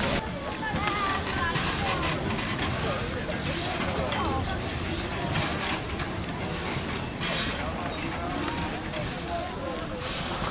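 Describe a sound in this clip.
Train wheels squeal and screech against the rails.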